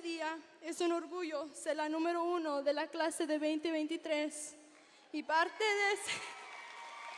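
A young woman sings into a microphone that carries her voice through an echoing hall.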